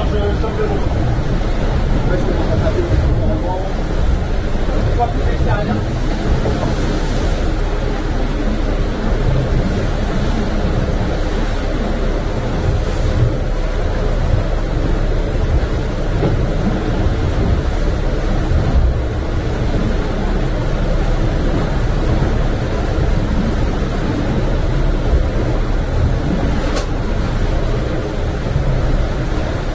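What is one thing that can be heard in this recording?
Strong wind roars steadily outdoors.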